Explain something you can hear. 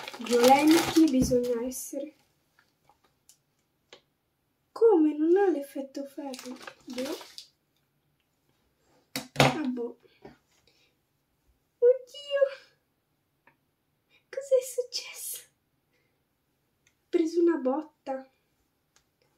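A young girl talks calmly close by, in short bursts.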